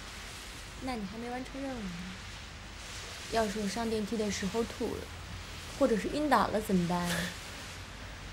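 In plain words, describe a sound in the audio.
A young woman speaks quietly and hesitantly, close by.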